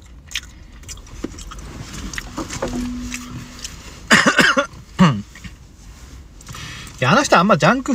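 Paper and plastic rustle as a man rummages in a bag.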